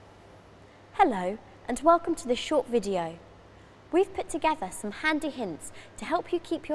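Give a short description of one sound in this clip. A young woman speaks calmly and clearly into a clip-on microphone, close by.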